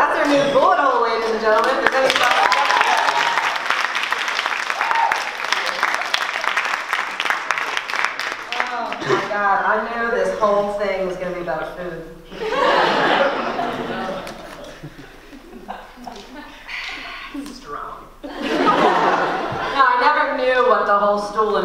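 A young woman speaks with animation through a microphone in a large echoing hall.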